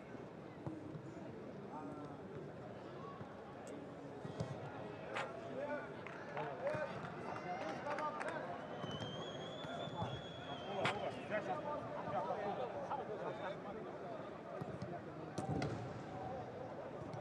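A crowd murmurs in a large echoing stadium.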